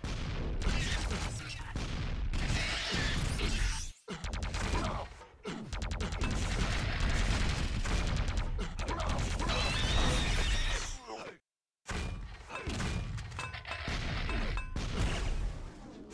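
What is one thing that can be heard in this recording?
Gunfire and explosions from a video game crackle and boom.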